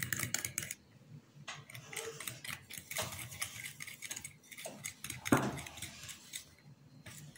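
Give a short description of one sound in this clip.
A fork clinks against a ceramic bowl, beating egg.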